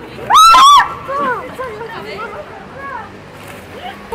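Young women laugh and shriek with excitement close by.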